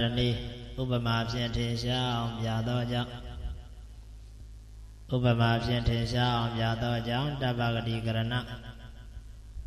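A young man chants slowly into a microphone.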